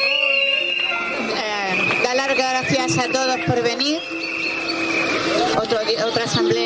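A crowd of protesters shouts and chants outdoors.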